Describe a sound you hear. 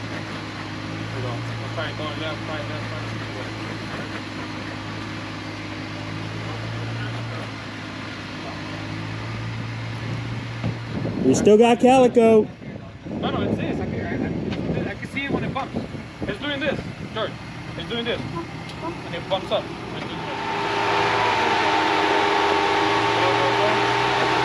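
An off-road vehicle's engine idles and revs as it crawls over rocks.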